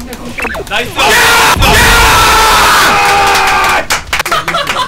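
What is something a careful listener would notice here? Young men shout loudly and excitedly together.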